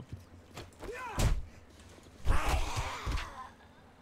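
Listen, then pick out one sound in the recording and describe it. A club thuds into a body with heavy blows.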